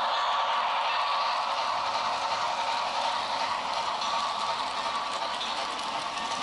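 Model train wheels click over rail joints.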